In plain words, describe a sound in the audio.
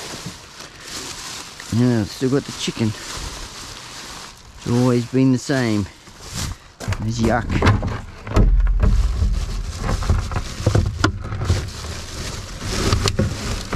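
A plastic bin bag rustles and crinkles as it is handled.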